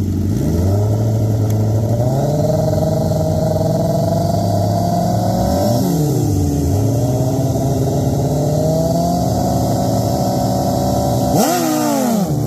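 Motorcycle engines idle and rev loudly close by.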